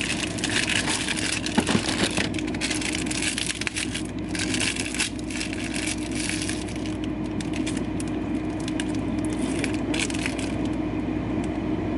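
A plastic wrapper crinkles as it is torn open.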